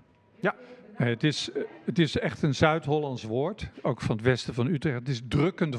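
An elderly man speaks calmly into a handheld microphone.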